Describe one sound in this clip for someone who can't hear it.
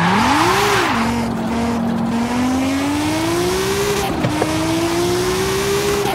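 A car engine climbs steadily in pitch as it accelerates.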